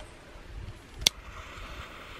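A gas stove igniter clicks.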